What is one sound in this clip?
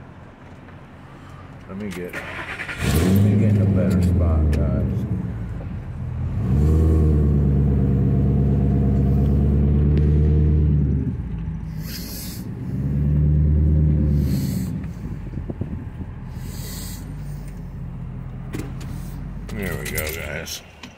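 A car engine hums at low speed.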